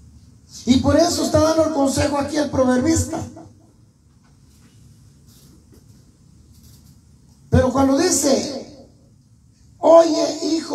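A man sings or speaks loudly through a microphone and loudspeaker in a small echoing room.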